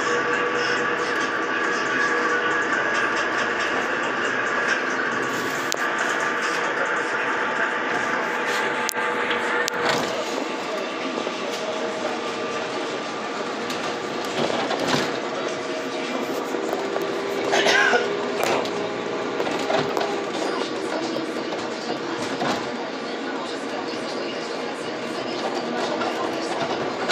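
A bus engine hums steadily from inside while driving.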